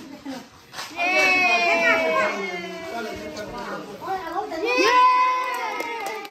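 Young children sing and cheer loudly in high voices.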